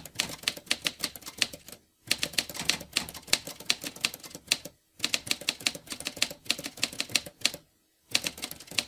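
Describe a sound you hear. A typewriter clacks out quick bursts of keystrokes with short pauses between them.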